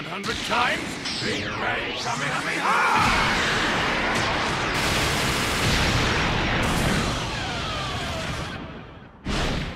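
An energy blast whooshes and roars.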